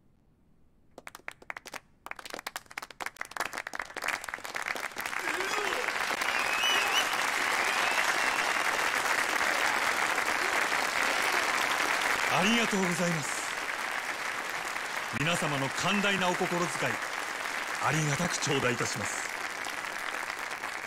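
A large crowd claps and applauds loudly.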